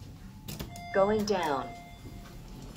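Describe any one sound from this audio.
An elevator button beeps when pressed.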